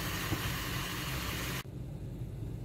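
Food sizzles and hisses in a covered pan.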